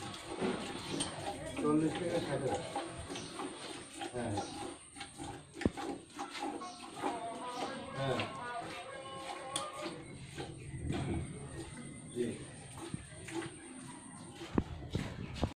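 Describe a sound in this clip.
Milk squirts rhythmically into a pail.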